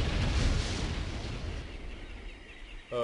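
A magic spell bursts with a loud rushing whoosh that fades away.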